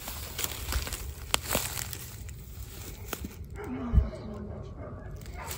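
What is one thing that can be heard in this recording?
Boots crunch and rustle through dry leaves and grass.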